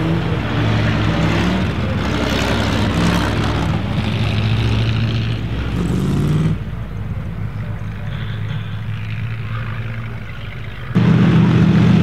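Vintage car engines roar as the cars race across snow.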